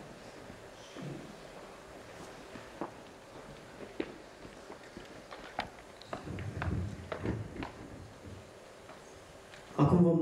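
A small orchestra plays softly in a large hall.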